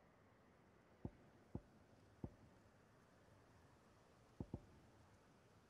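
Soft interface clicks tick a few times.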